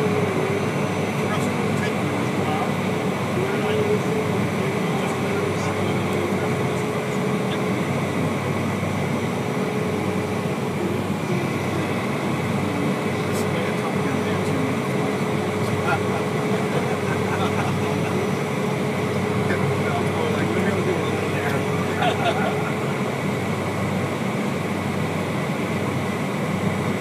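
An aircraft engine drones steadily and loudly from inside the cabin.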